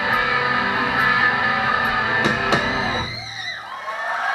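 A band plays loud electric guitars, then stops abruptly.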